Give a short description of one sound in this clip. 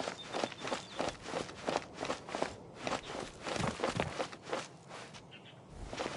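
Footsteps patter quickly on a dirt path.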